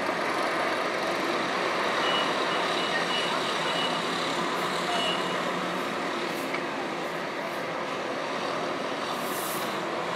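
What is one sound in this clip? Distant town traffic hums steadily outdoors.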